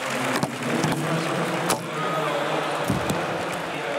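A pole vaulter lands with a thud on a padded mat.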